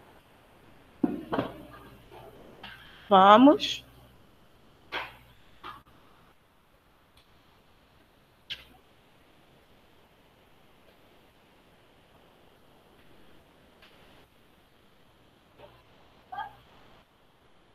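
A woman speaks in short bursts through a face mask into a headset microphone.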